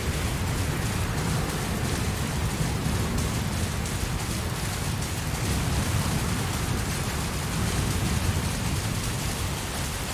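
Steady rain falls with a low rumbling hiss.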